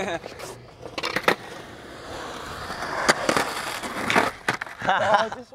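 A skateboard clacks sharply against concrete.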